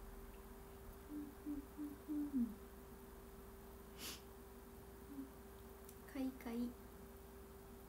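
A young woman speaks softly and playfully into a nearby microphone.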